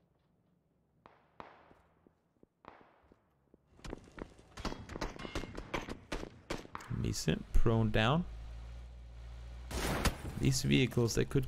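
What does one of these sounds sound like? Rifle shots crack in quick bursts, echoing over open ground.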